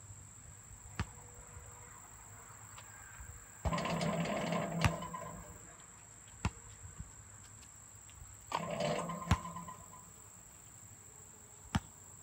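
A basketball bounces on hard pavement outdoors.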